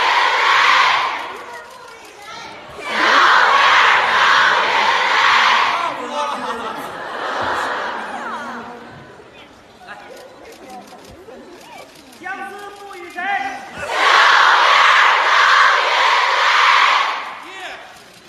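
A large audience applauds in an echoing hall.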